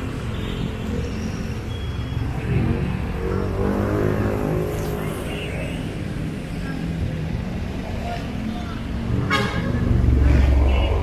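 A diesel engine idles and rumbles close by.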